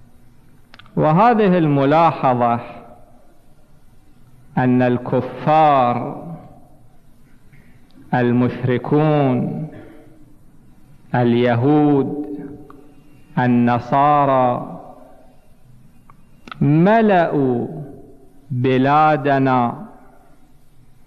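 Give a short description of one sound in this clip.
A middle-aged man speaks into a microphone in loud, drawn-out chanted phrases, with pauses between them, in an echoing hall.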